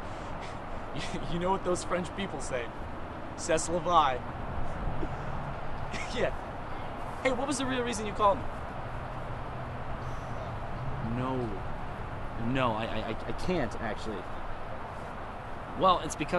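A young man talks on a phone with animation, close by.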